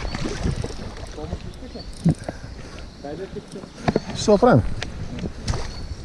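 Water splashes as a small fish is pulled to the surface.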